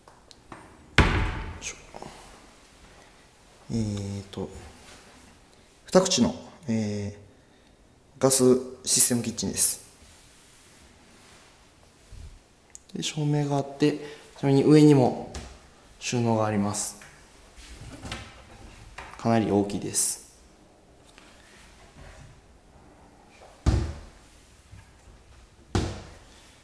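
A cabinet door knocks shut with a sharp bump.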